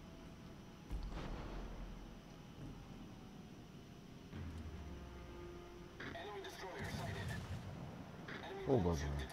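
Heavy naval guns fire with deep booms.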